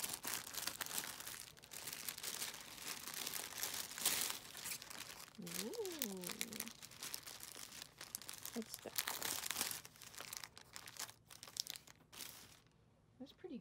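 A plastic bag crinkles and rustles close by as it is handled.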